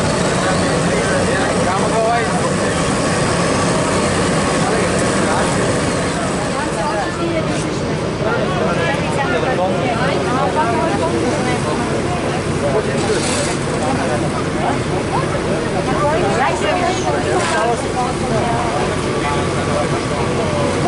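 A heavy paving machine's engine rumbles steadily nearby.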